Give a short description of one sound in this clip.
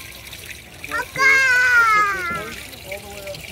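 A toddler squeals loudly up close.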